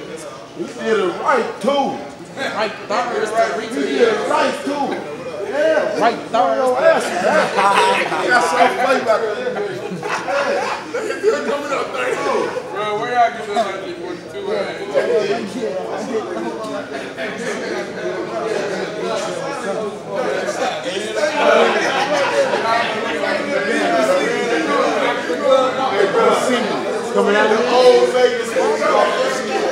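Young men talk with animation close by.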